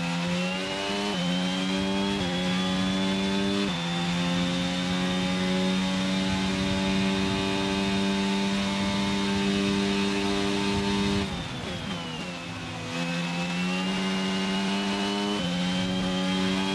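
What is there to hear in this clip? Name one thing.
A racing car engine roars at high revs, its pitch jumping as it shifts up through the gears.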